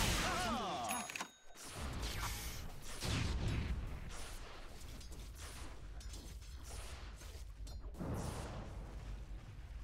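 Weapons clash and strike during a fight.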